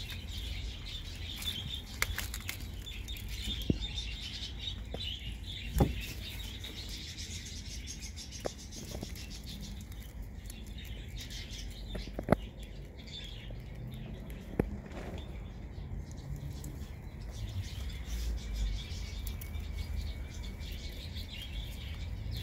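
Straw rustles as rabbits move about.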